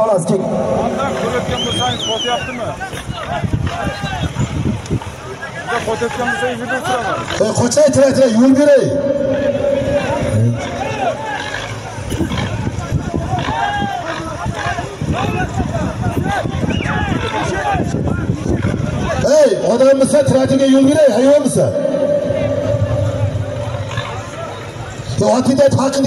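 A large crowd of men shouts and chatters loudly outdoors.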